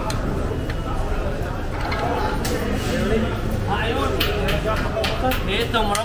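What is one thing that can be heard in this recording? Ceramic plates clink against one another.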